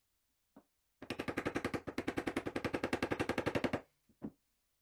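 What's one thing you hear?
A mallet taps rapidly on a wooden-handled chisel cutting into fibreboard.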